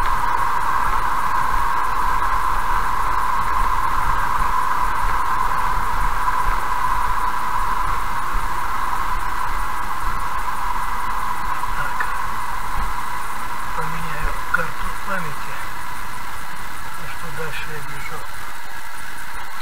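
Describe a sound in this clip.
A car's tyres hum on the road and fade as the car slows to a stop.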